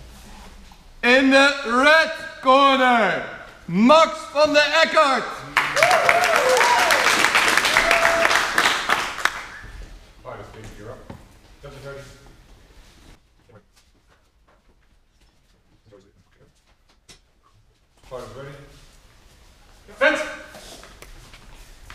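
A man calls out loudly in an echoing hall.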